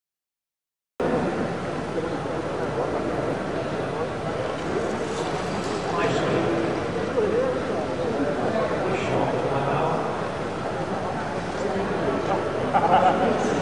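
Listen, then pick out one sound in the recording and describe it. A small model plane's propeller whirs as the plane flies around a large echoing hall.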